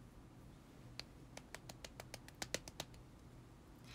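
Fingernails tap together lightly in quick clicks.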